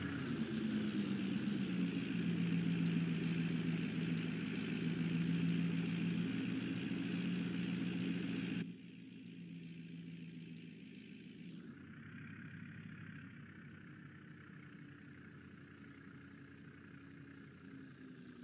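A truck's diesel engine idles with a steady low hum, growing muffled partway through.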